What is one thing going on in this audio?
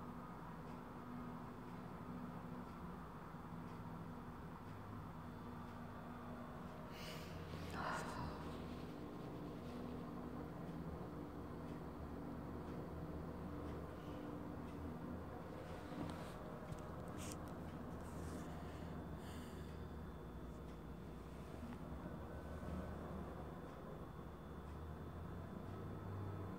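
A television plays quietly nearby.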